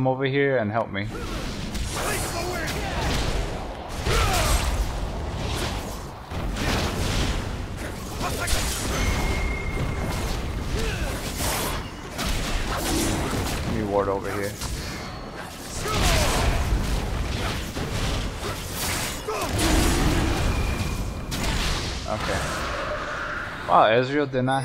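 Video game combat effects clash and thump rapidly.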